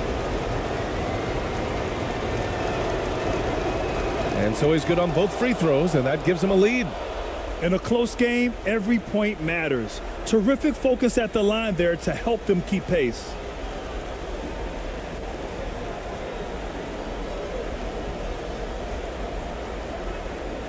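A large crowd murmurs steadily in a big echoing arena.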